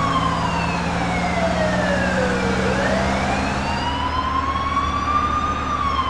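A police siren wails, rising and falling in pitch.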